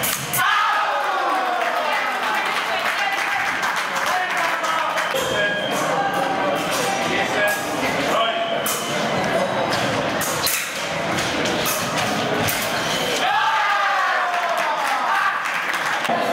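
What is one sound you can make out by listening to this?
Young men clap their hands.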